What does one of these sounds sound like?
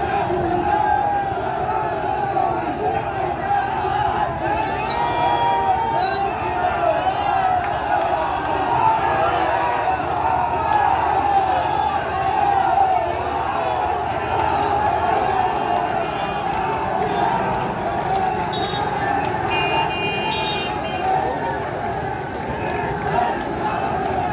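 A large crowd of men chants and shouts loudly outdoors.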